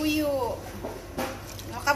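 Liquid pours from a bottle onto meat.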